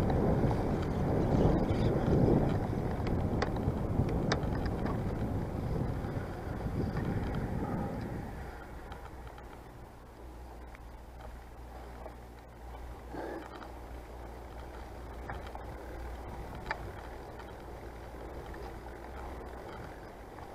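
Bicycle tyres roll along a paved path.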